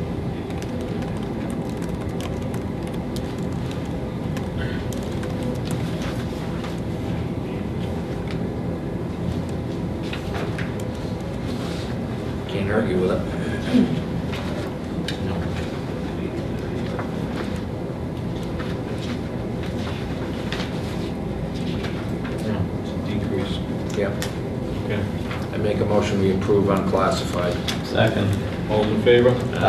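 Keys clatter softly on a laptop keyboard.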